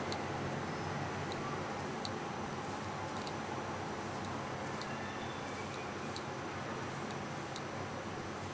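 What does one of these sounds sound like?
A watch mechanism clicks sharply every so often.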